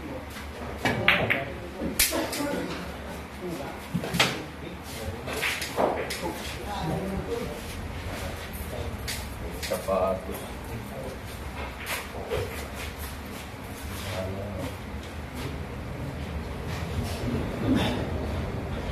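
Pool balls click sharply against each other.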